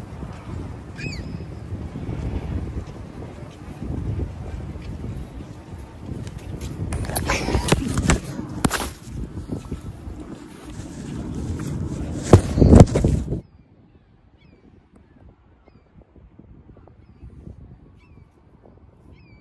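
A gull squawks nearby.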